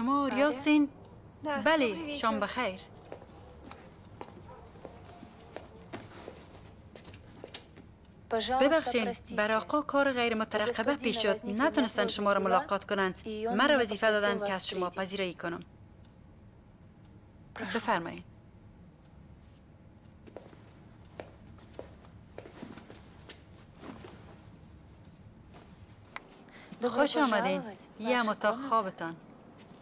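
A young woman speaks calmly and politely nearby.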